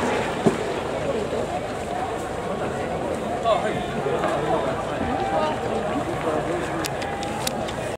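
A large stadium crowd chatters and cheers in a steady roar.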